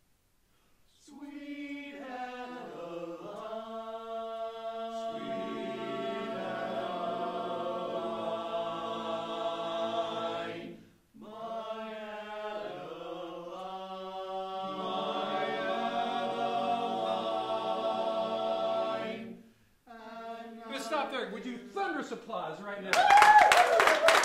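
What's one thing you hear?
A young man sings loudly and with feeling in an echoing room.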